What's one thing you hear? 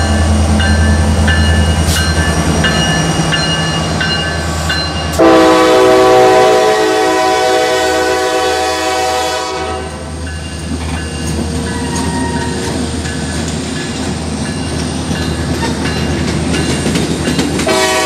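Train wheels clatter and squeal on the rails as the train passes.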